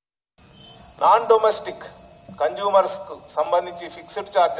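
A middle-aged man reads out calmly into a microphone.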